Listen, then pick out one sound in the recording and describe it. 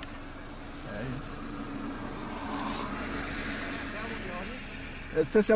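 A man talks calmly nearby inside a car.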